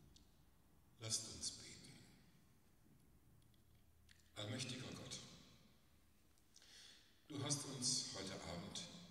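An elderly man speaks slowly into a microphone, echoing through a large hall.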